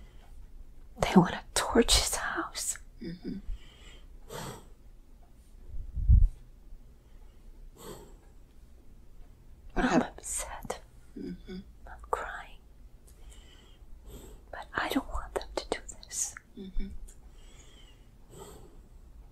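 An elderly woman moans and groans in pain close by.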